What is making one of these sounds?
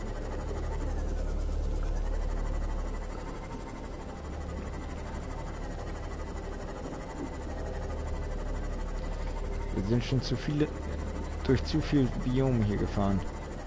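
A submarine engine hums low and steady underwater.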